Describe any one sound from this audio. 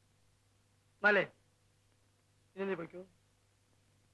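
An elderly man speaks briefly in a low voice, close by.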